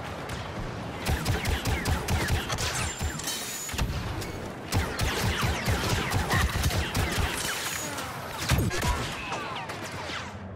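Blaster guns fire in rapid bursts.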